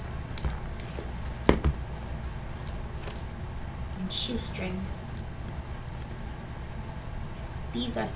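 Boots knock and scrape against each other as they are handled.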